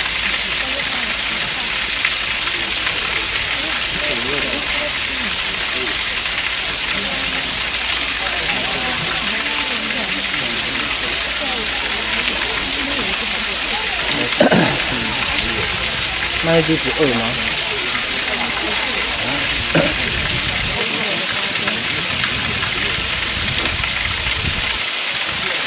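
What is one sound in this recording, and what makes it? Water rushes and splashes steadily over rocks.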